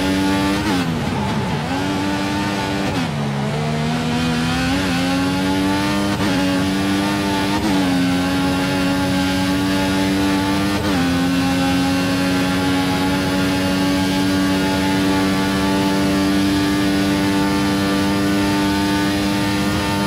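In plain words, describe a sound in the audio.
A racing car engine whines loudly, dropping in pitch for corners and rising through the gears.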